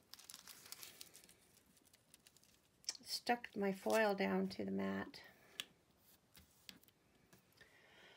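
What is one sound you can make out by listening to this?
A sheet of metallic foil crinkles under fingers.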